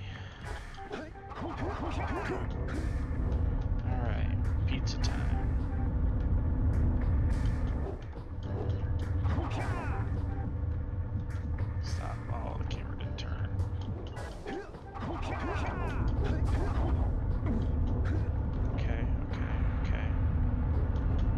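Game music and sound effects play steadily.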